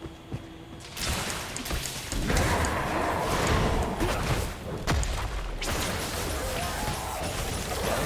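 Magic spells crackle and explode during a video game fight.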